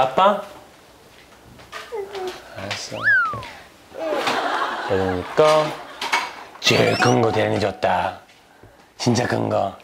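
A man speaks gently to a toddler.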